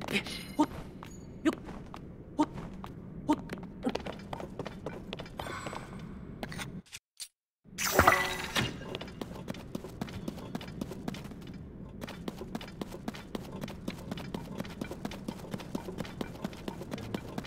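Quick light footsteps patter on rocky ground.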